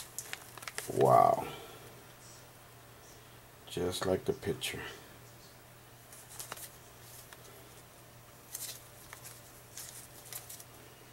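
Plastic card cases click and rustle as they are handled.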